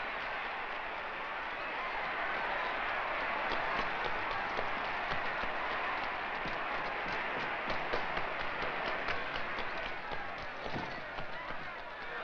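Footsteps run quickly along a hard floor.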